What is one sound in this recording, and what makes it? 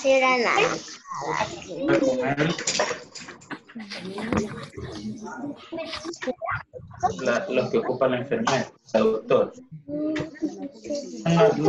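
A woman talks calmly to children over an online call.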